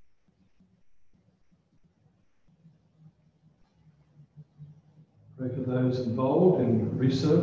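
An older man speaks through a microphone, heard over an online call.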